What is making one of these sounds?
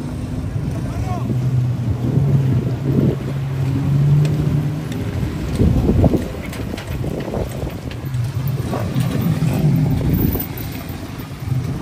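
A jeep engine revs and roars while towing a trailer over rough ground.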